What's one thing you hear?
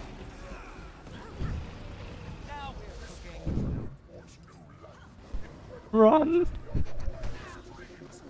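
Magic spells whoosh and crackle in a video game.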